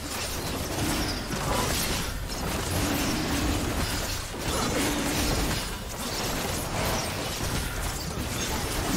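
Game spell effects and attacks crackle and whoosh in a fight.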